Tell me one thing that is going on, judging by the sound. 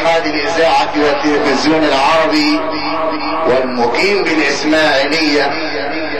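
A man chants in a drawn-out, melodic voice through a microphone, with echo.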